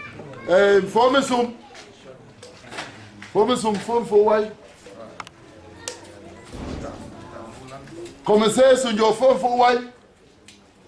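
A man calls out loudly in short bursts nearby.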